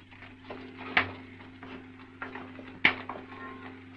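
A door handle clicks as a door opens.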